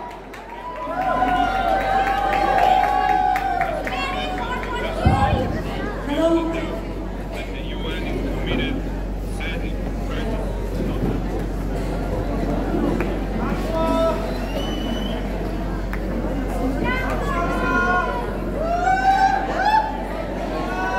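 A young woman sings into a microphone over loudspeakers in a large echoing hall.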